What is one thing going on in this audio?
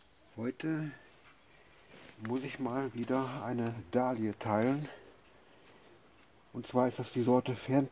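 Dry roots and soil rustle as hands pull at them.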